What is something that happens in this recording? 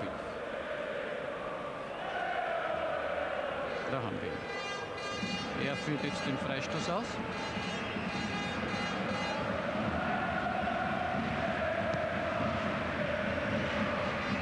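A large stadium crowd chants and roars throughout.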